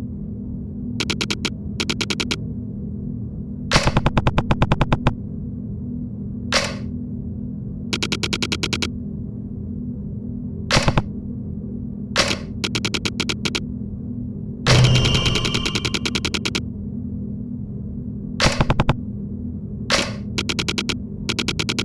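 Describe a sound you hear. Short electronic blips tick rapidly in bursts.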